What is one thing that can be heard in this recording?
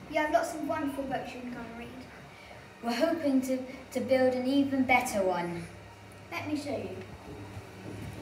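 A young child speaks clearly and calmly, close by.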